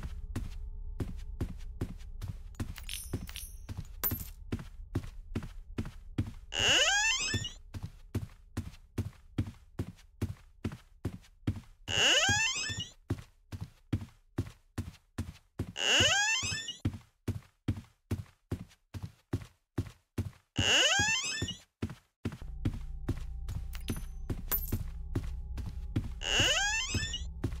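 Footsteps thud quickly and steadily on a soft floor.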